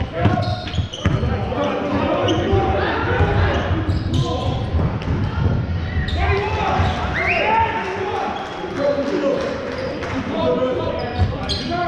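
Men shout and call out across the echoing hall.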